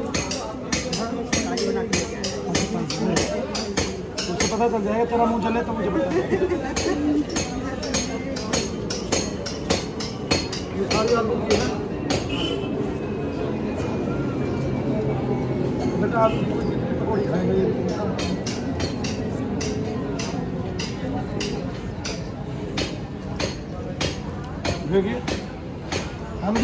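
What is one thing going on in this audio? A middle-aged man talks warmly up close.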